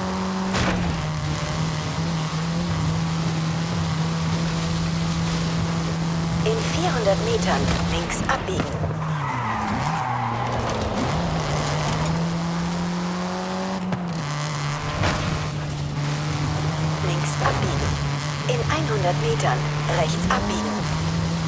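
A car engine roars steadily at high revs, dipping as the gears shift.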